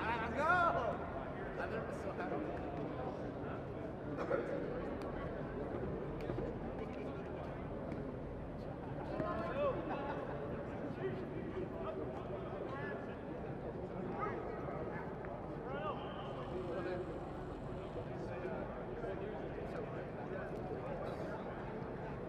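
Men and women talk and call out across an open field outdoors.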